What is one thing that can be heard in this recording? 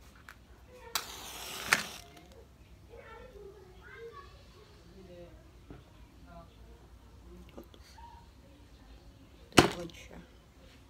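A match strikes and flares with a hiss.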